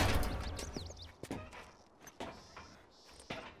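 Footsteps walk on hard pavement.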